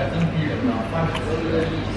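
A young woman blows on hot food.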